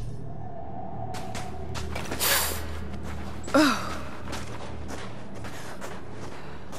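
Footsteps crunch on loose grit and stone.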